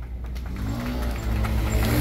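A motorbike engine hums as it passes by.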